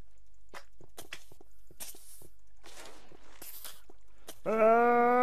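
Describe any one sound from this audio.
A sword strikes a creature with short, sharp hits.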